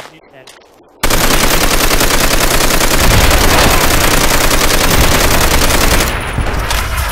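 A heavy machine gun fires rapidly and loudly.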